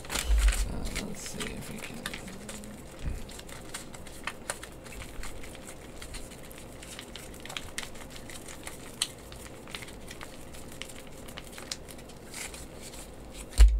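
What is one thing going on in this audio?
Paper sheets are unfolded with crisp rustling.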